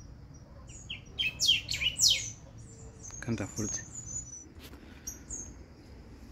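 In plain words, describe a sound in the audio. A small bird chirps sharply nearby.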